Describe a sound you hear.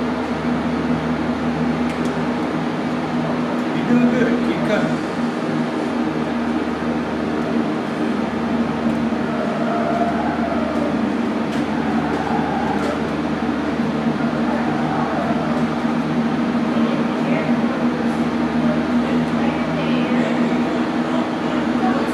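Several people talk quietly nearby in a room.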